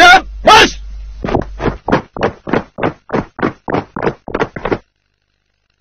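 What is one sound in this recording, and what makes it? Boots stamp in step as a group of men marches.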